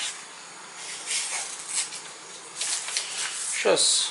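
A blade slices through paper with crisp scraping sounds.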